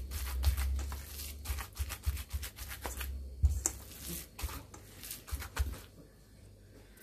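A hand squishes and kneads a wet, sticky mixture in a metal bowl.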